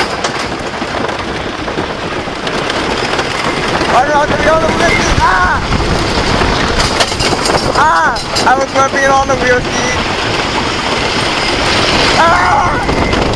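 A wooden roller coaster rattles and roars loudly along its track.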